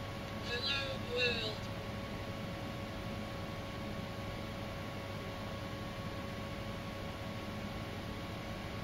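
Electronic equipment hums steadily.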